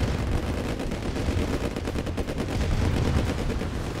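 Explosions boom as vehicles are hit.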